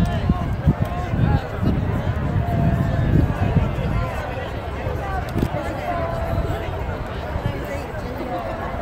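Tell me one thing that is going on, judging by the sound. A crowd of adults chatters quietly nearby outdoors.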